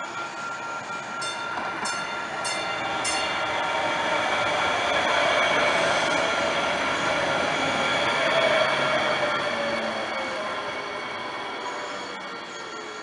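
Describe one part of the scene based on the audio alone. A light rail train rolls past close by with a rising hum and a squeal of wheels, then fades away.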